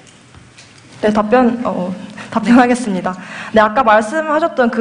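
A young woman speaks brightly through a microphone in a large echoing hall.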